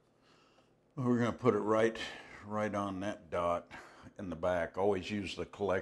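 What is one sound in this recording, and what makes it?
An older man talks calmly and clearly, close by.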